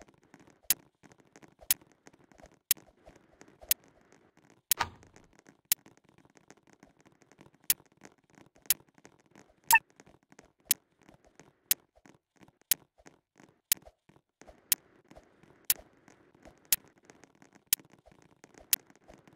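A basketball bounces on a hard court in a steady rhythm.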